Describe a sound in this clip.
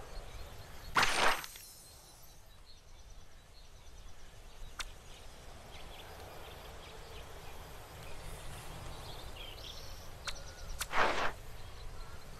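A short swooshing sound effect plays.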